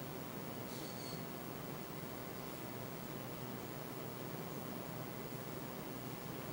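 A paintbrush brushes softly across canvas.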